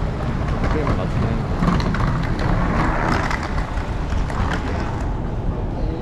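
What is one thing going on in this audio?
Suitcase wheels rattle over a hard floor.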